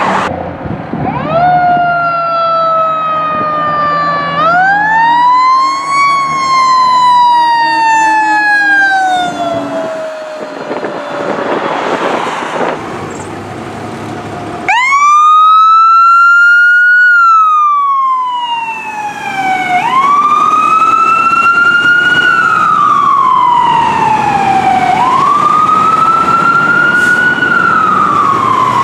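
A fire truck siren wails, rising and falling, close by.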